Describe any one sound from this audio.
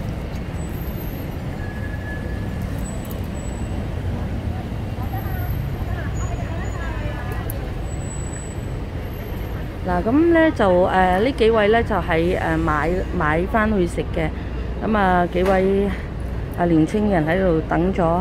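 Traffic rumbles steadily in a nearby street.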